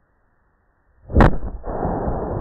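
A firework explodes with a loud boom outdoors.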